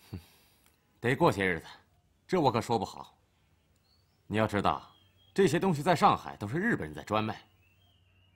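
A young man speaks in a low, casual voice up close.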